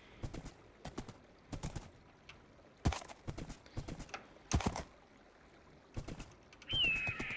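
A horse's hooves clop steadily on the ground.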